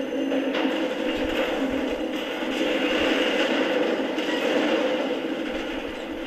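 Heavy metal wreckage crashes and scrapes down.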